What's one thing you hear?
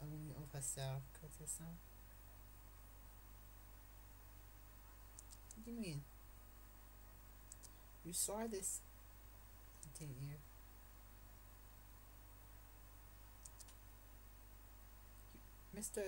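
A young person speaks quietly and casually into a nearby microphone, in short bursts with pauses.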